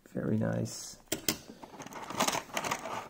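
A small plastic toy clicks against a plastic tray.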